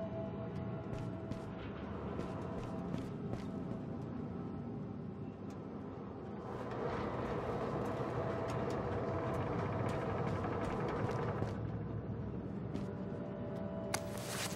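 Small footsteps patter quickly on a hard floor.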